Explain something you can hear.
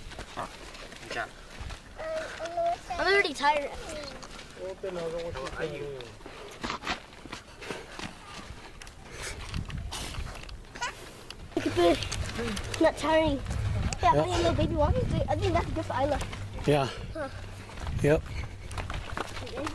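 Children and young adults talk and call out nearby.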